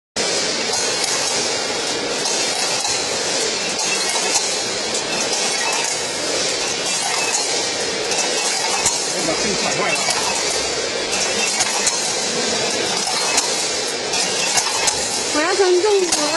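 A machine hums and rattles steadily.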